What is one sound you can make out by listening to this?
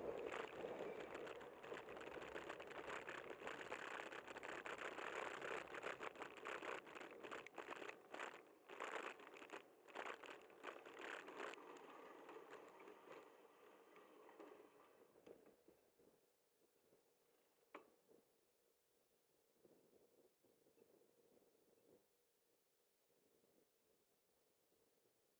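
Traffic hums and rolls past on the road.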